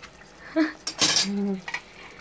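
Metal tongs clink and scrape against a foil cup in a pot.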